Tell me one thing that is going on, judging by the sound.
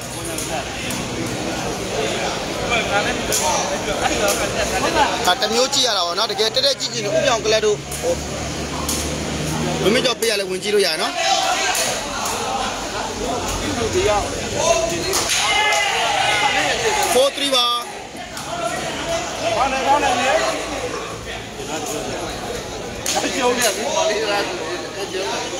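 A large crowd of spectators chatters and cheers.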